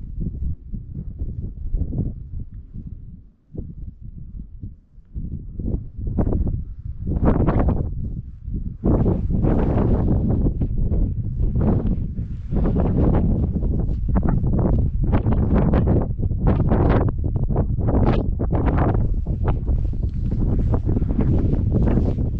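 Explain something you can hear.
Strong gusts of wind buffet the microphone outdoors, rising to a steady roar.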